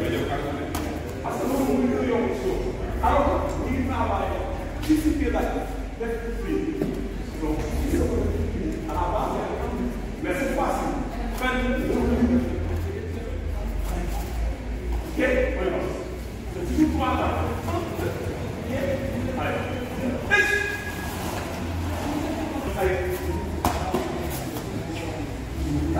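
A man speaks loudly and firmly in an echoing hall.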